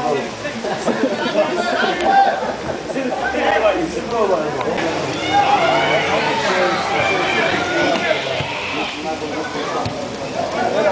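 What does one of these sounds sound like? A crowd of nearby adult spectators chatters and calls out outdoors.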